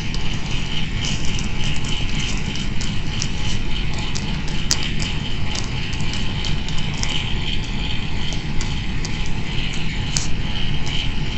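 Phone keyboard keys click in quick taps as a message is typed.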